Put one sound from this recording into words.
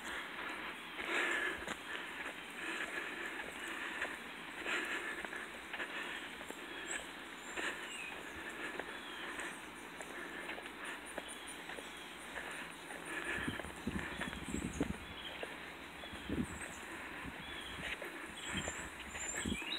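Footsteps walk on a paved road outdoors.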